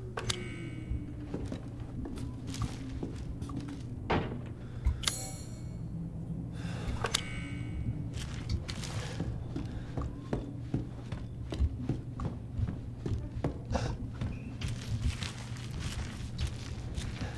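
Footsteps creak across wooden floorboards.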